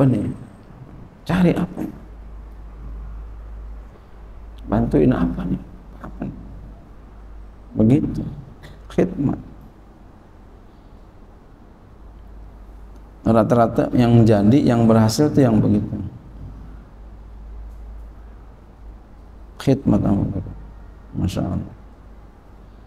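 A man speaks slowly into a microphone, pausing between phrases.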